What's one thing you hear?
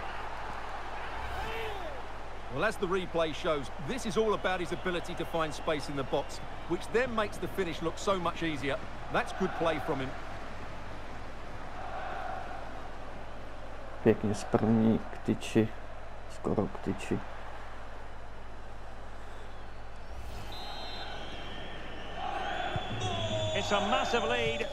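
A large crowd murmurs and chants steadily in a stadium.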